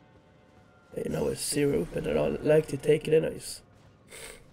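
A sword swings with a bright magical whoosh and crackle.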